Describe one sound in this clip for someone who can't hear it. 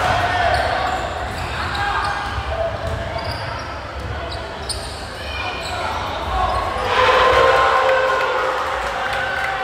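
A crowd of players and onlookers shouts and calls out, echoing.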